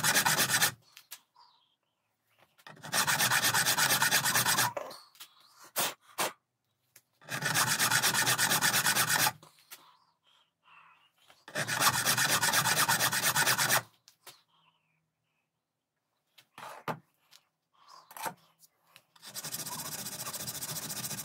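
A hand file rasps across metal in bursts of strokes.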